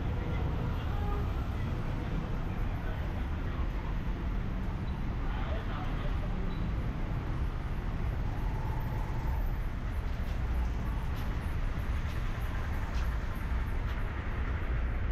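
Traffic hisses by on a wet street.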